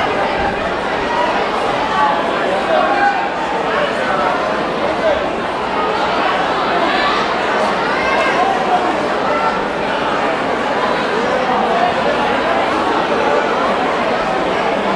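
A large indoor crowd chatters and murmurs in a big echoing hall.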